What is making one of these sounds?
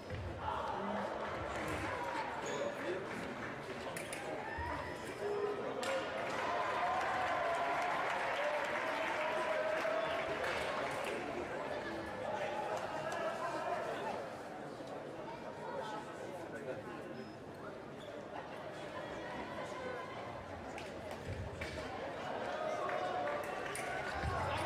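Fencers' shoes slap and squeak on the floor.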